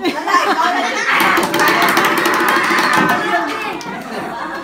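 A crowd of young people cheer and shout loudly.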